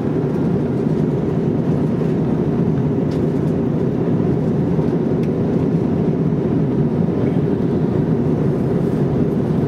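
Jet engines roar steadily inside an airplane cabin in flight.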